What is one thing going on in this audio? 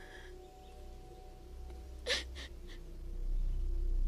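A young woman sobs quietly.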